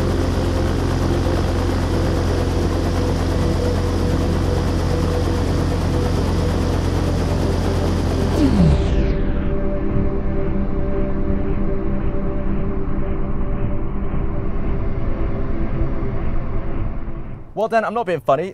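A fire roars and whooshes loudly.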